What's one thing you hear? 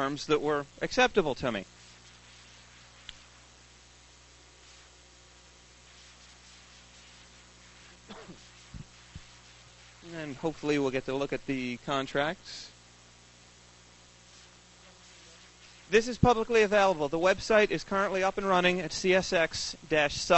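A young man speaks calmly into a microphone, with long pauses.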